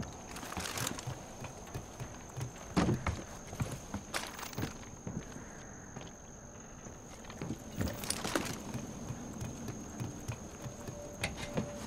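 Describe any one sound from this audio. Hands and feet clank on metal ladder rungs while climbing.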